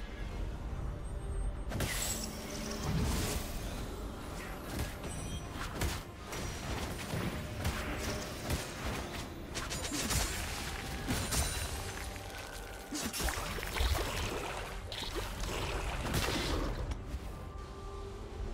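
Video game spell effects whoosh and crackle in quick bursts.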